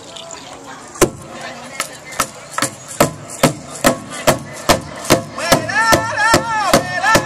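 A large drum is beaten in a steady, even rhythm outdoors.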